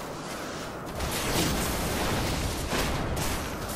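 A whirlwind rushes and roars loudly.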